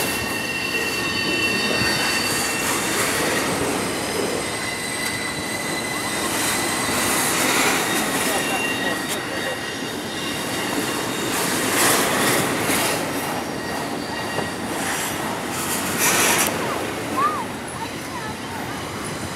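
A freight train rumbles and clatters steadily along the tracks.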